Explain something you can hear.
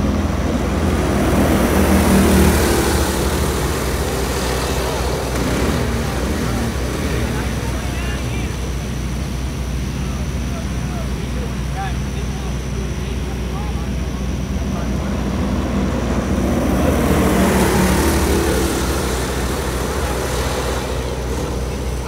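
Small kart engines whine loudly as they race past, outdoors.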